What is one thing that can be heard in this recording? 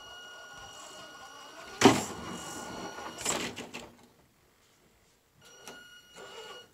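A small electric motor whines.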